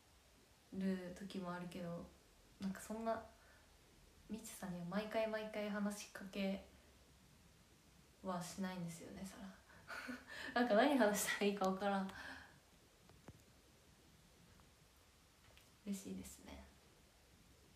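A young woman talks calmly and cheerfully, close to a microphone.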